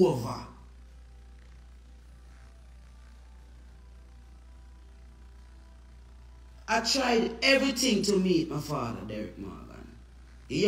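A woman speaks with animation close to the microphone.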